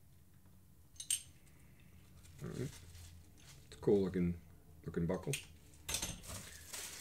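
A plastic buckle clicks and snaps.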